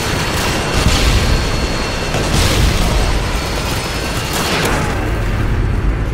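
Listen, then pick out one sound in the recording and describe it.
A loud explosion bursts nearby.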